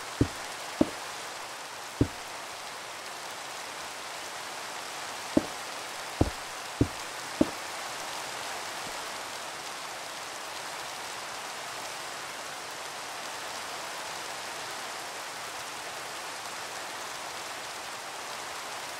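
Rain patters and hisses steadily.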